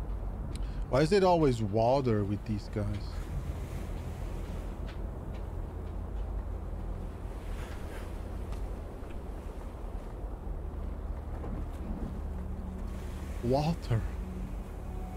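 A man speaks briefly and with animation, close to a microphone.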